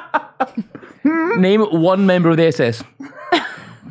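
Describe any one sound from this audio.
A young man laughs heartily close to a microphone.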